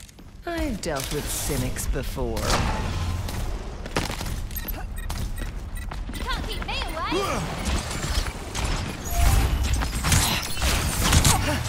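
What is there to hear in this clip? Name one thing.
Energy weapons fire and zap in quick bursts.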